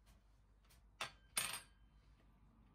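A fork is set down on a wooden table with a clack.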